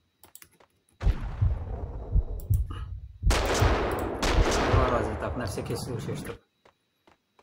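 Gunshots boom and echo.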